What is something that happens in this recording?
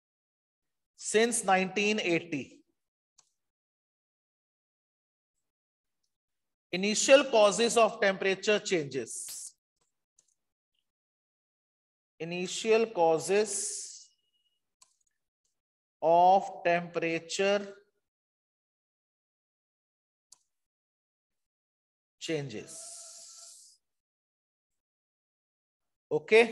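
A man speaks calmly in short phrases over an online call, with gaps of silence between.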